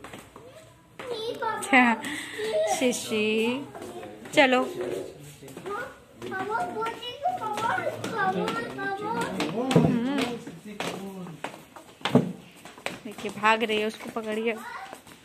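A young girl chatters in a high voice close by.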